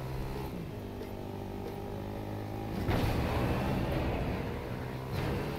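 A quad bike engine hums steadily as it drives along.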